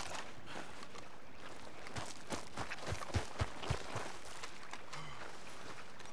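Water laps gently at a shore.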